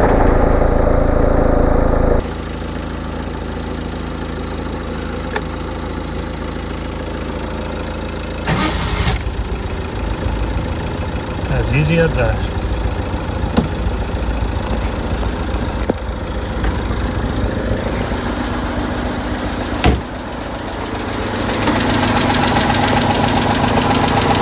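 A small car engine idles with a steady, throbbing rumble.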